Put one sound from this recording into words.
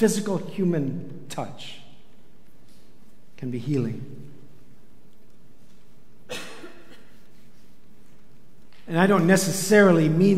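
A middle-aged man speaks with animation through a microphone in an echoing hall, with long pauses.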